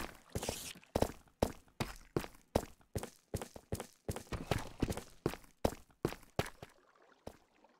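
Footsteps crunch steadily across stone in a video game.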